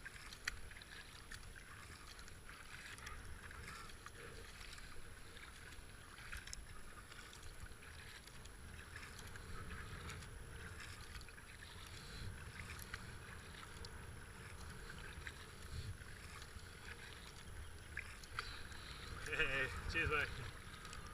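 A paddle dips and splashes in the water with each stroke.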